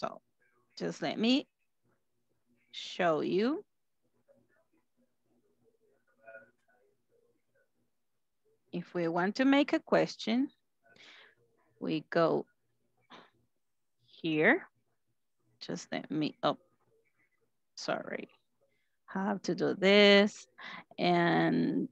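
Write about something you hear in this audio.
A woman speaks calmly over an online call, in short phrases with pauses.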